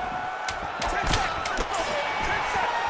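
A punch smacks against a body.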